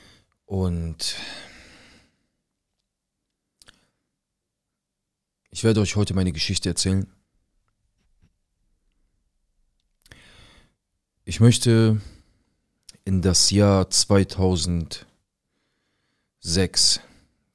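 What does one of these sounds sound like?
A man speaks calmly and closely into a microphone, in short bursts with pauses.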